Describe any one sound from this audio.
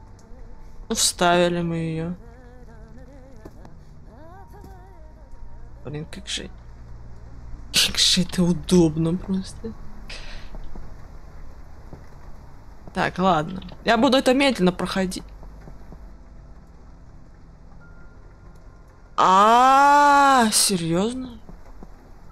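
A teenage boy talks with animation close to a microphone.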